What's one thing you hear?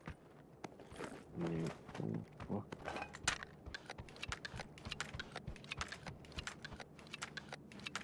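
A revolver clicks as it is handled and loaded.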